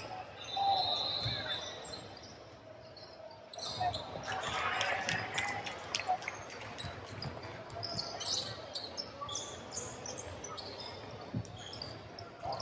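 Young men chatter and call out in an echoing gym.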